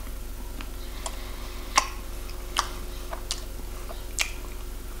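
A man chews food noisily close by, with wet smacking sounds.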